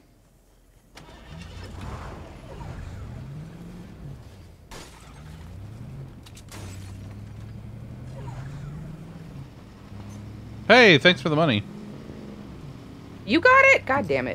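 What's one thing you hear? A car engine hums and revs as a car drives.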